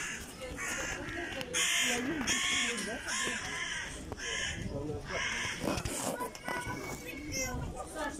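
Young people talk and laugh nearby outdoors.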